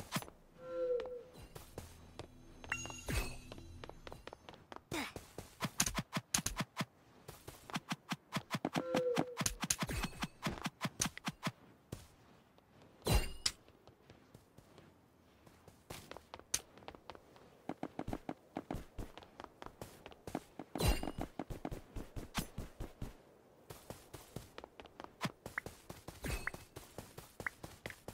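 Video game blocks are placed with quick, rapid clicks.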